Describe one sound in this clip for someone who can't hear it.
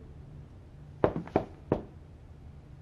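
Sneakers thump up wooden stairs.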